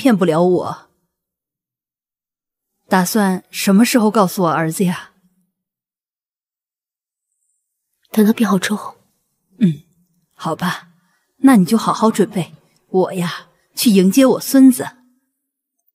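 A woman speaks in a tearful, emotional voice close by.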